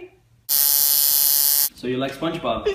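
A tattoo machine buzzes steadily.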